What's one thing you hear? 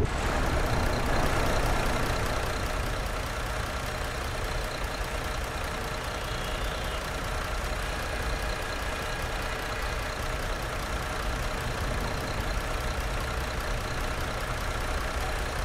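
A bus engine rumbles low and steady as the bus drives slowly.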